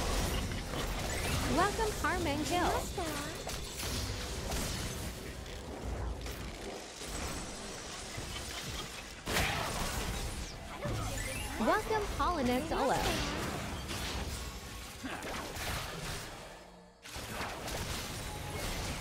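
Video game spell effects whoosh and crackle throughout.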